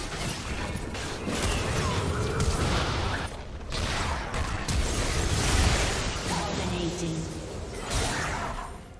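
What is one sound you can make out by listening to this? Game spell effects whoosh and crash in a fight.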